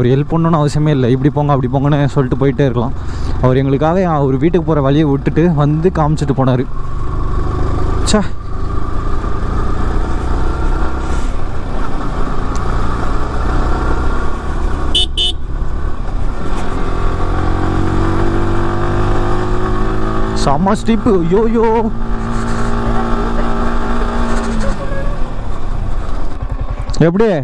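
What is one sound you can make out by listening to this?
A motorcycle engine hums and revs up and down while riding.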